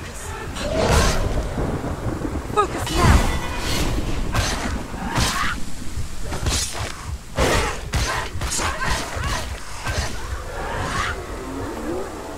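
Swords clash and slash in quick, heavy blows.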